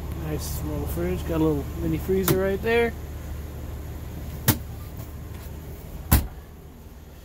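A small plastic compartment door clicks open and shut.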